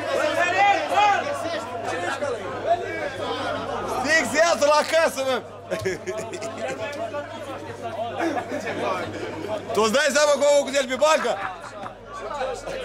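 Several adult men argue loudly with one another outdoors.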